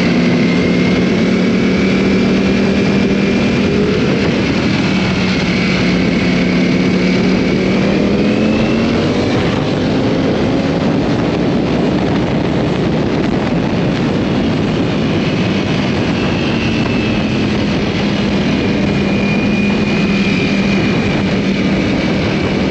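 A superbike engine hums while cruising at speed, its pitch rising as it accelerates.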